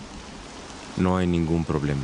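A second man speaks in a low, serious voice.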